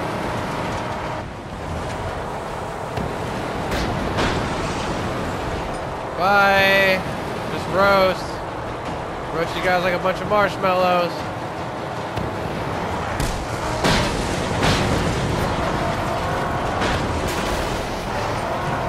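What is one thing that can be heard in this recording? A game vehicle engine roars steadily.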